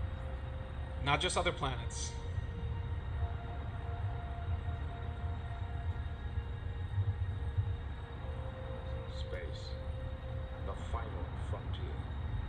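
A man speaks into a microphone in short phrases, heard through a loudspeaker.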